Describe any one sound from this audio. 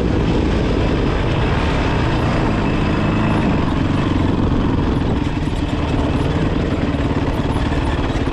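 Tyres crunch over loose dirt and gravel.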